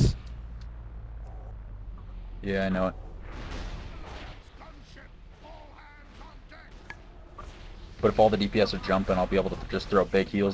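Weapons clang and spells burst in a fight.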